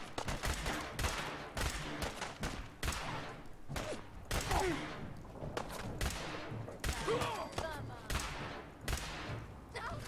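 Gunshots fire in rapid, repeated bursts.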